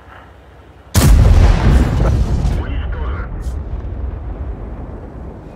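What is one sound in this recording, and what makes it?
A heavy tank gun fires with a loud boom that rumbles away.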